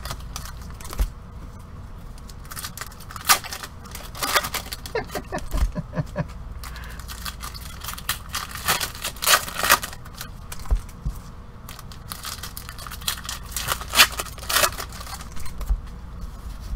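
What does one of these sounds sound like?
Card boxes knock and thud against each other.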